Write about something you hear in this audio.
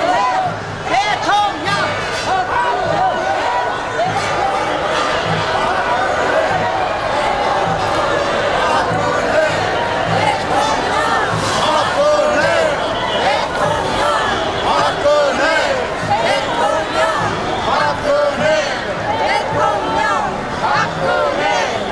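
A large crowd of men and women talks and calls out loudly outdoors.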